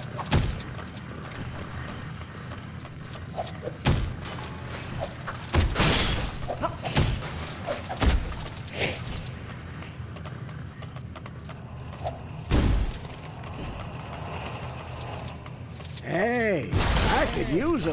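Plastic pieces clatter as objects smash apart.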